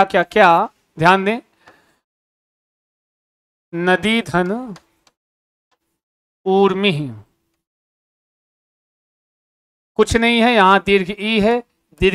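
A young man speaks clearly in short phrases, close to a microphone.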